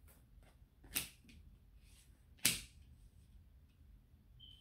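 A card is laid down on a table with a soft tap.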